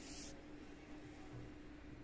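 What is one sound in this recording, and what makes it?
Fabric rustles softly as a hand handles it.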